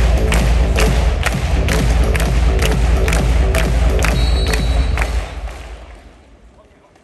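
A large crowd claps and bangs in a steady rhythm in a big echoing arena.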